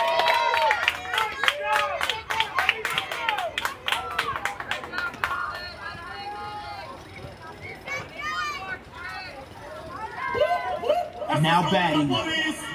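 Young girls cheer and chant loudly outdoors.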